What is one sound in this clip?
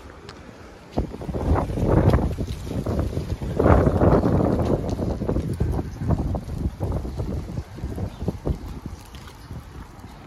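Wind gusts roughly outdoors.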